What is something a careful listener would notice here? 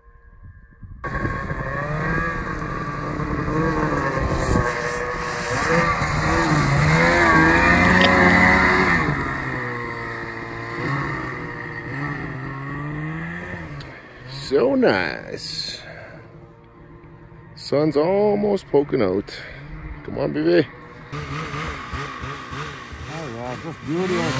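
A snowmobile engine revs and whines as the sled climbs through deep snow.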